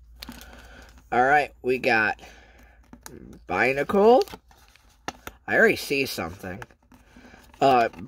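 Playing cards slide and rustle softly as hands leaf through a stack.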